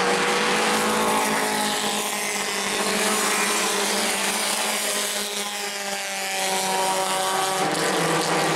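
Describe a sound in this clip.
Race car engines rise and fall in pitch as the cars pass close by.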